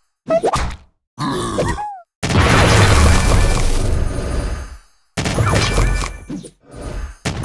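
Cartoon explosions burst with loud booms.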